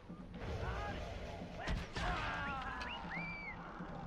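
A bow string twangs as an arrow is loosed.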